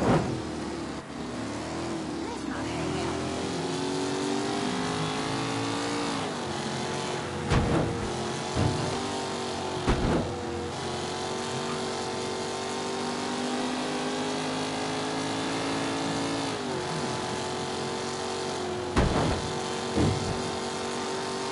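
A car engine hums steadily, rising and falling in pitch as it speeds up and shifts gears.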